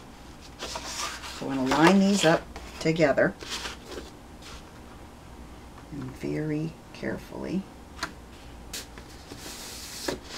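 Stiff card rustles and slides.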